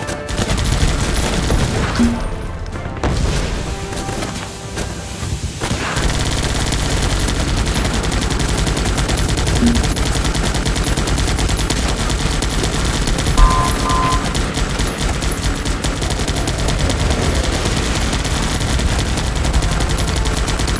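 Gunfire rattles rapidly in a game.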